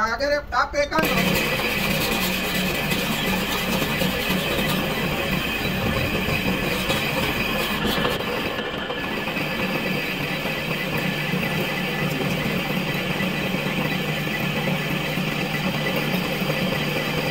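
A lathe tool cuts into a spinning metal workpiece.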